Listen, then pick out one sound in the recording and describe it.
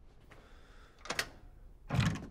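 A door lock clicks open.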